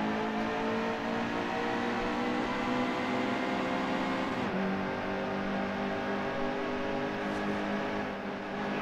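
Several race car engines roar loudly at high speed, close by.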